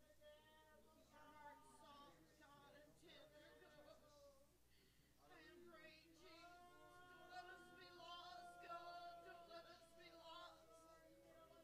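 A congregation sings together slowly in a large echoing hall.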